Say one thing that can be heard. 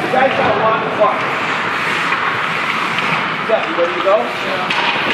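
Hockey sticks clack against a puck and the ice.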